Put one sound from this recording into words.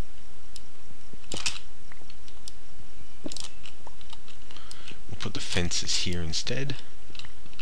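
A pickaxe chips and cracks at stone blocks.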